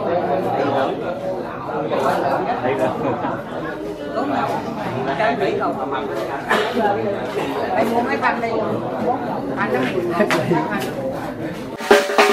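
Elderly men talk calmly close by, their voices overlapping.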